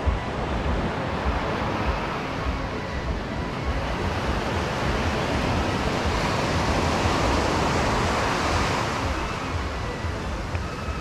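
Wind blows and rumbles.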